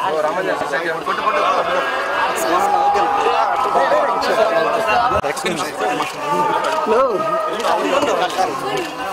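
A crowd of men talk and shout over one another close by, outdoors.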